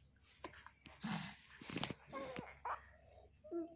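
A baby cries out briefly.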